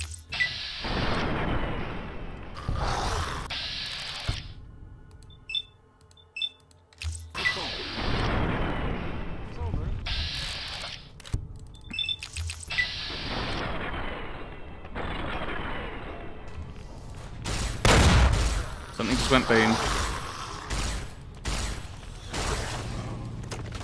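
A laser rifle fires in sharp zapping bursts.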